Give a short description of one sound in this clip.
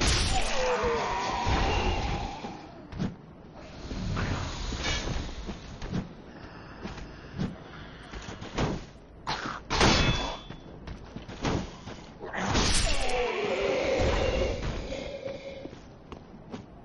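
Swords clash and ring with sharp metallic blows.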